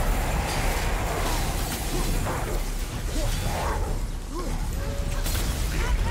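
Heavy blows and crackling lightning crash in a fight.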